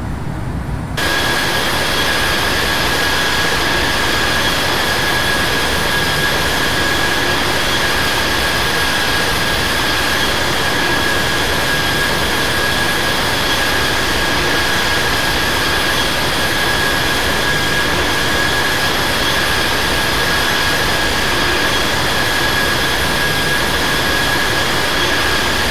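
Jet engines roar loudly and steadily, with a high, thin whine.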